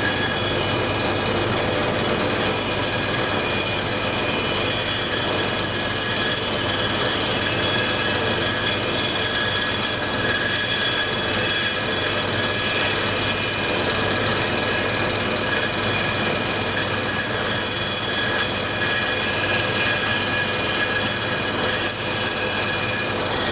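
A band saw whines steadily as it cuts through wood.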